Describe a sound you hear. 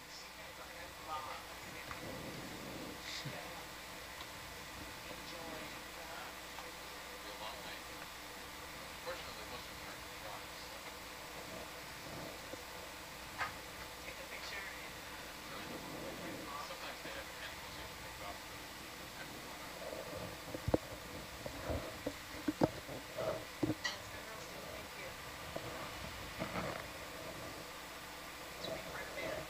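Muffled underwater ambience hums and crackles softly.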